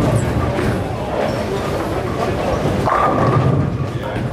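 A bowling ball rumbles as it rolls down a lane.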